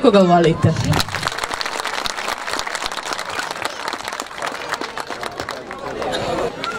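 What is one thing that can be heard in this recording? People clap their hands in quick, steady applause.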